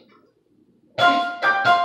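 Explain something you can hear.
An electric keyboard plays loud, bright chords.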